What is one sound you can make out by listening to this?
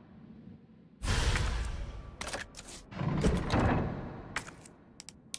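A heavy jewel clunks into place with a rumbling rattle.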